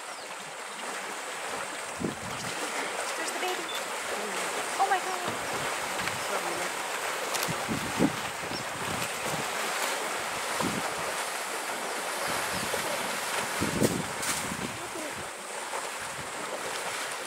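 Elephants wade and splash through muddy water.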